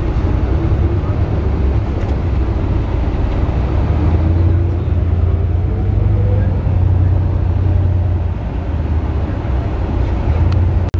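Tyres roar steadily on the road.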